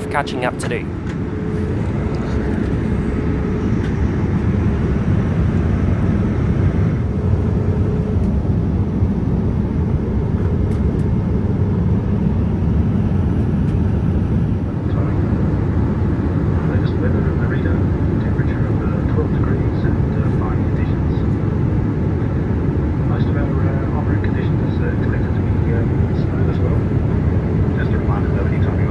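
Jet engines roar with a steady low drone.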